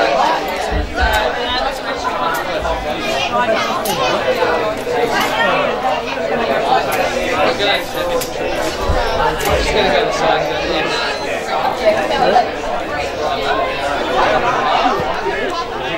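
Young players shout to each other across an open field in the distance.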